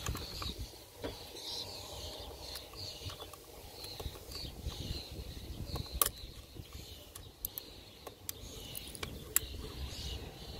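A small metal tool scrapes and clicks against a plastic connector.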